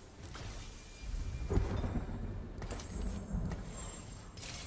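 Game sound effects of fighting clash and burst.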